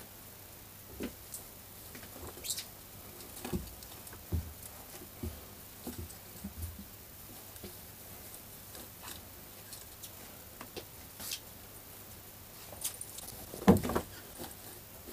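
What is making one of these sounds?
Soft thumps sound as clothing drops onto a flat surface.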